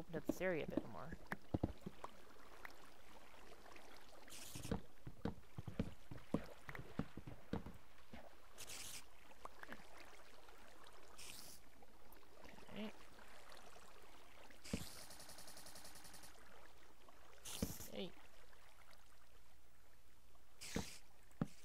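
Stone and wooden blocks crunch and thud in short bursts as they are dug out and set down.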